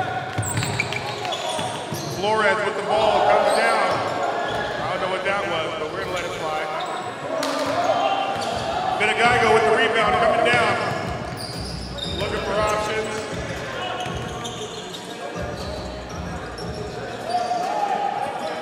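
A crowd murmurs in a large echoing gym.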